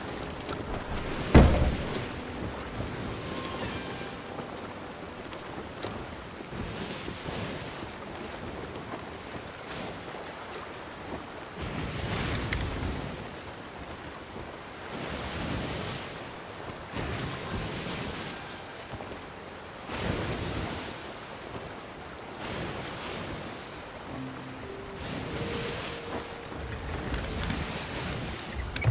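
Waves surge and crash against a wooden boat in waves of rising and falling noise.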